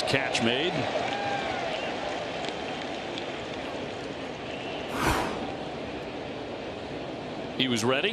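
A crowd murmurs and cheers in a large open ballpark.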